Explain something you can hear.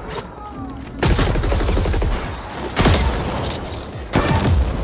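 Guns fire in loud, heavy bursts.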